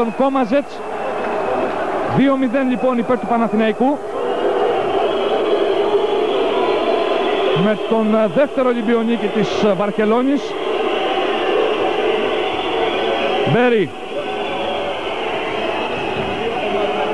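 A large indoor crowd murmurs and cheers in an echoing hall.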